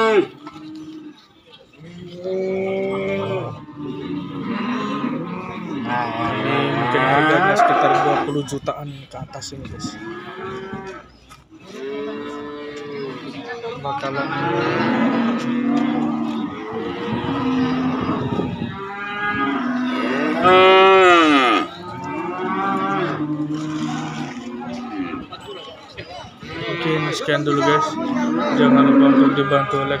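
A man talks close by in a lively, chatty way.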